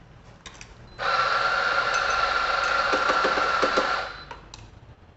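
A coffee grinder whirs steadily.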